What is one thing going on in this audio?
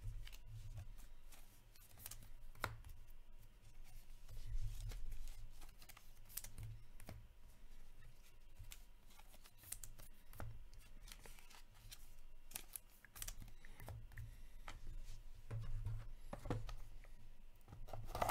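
Plastic card sleeves crinkle and rustle close by.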